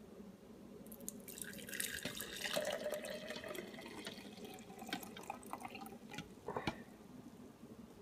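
Juice pours from a pitcher into a mug.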